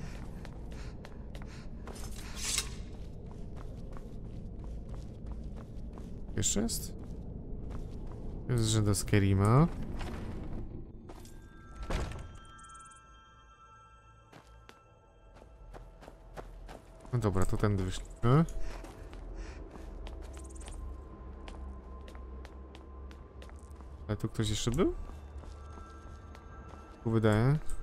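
Footsteps thud on stone as someone walks.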